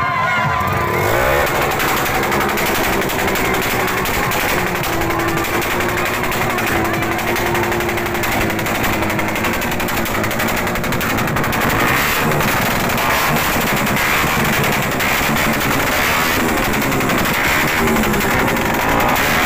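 A motorcycle engine roars and revs loudly close by.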